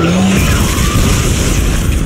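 A burst of fire flares with a loud whoosh.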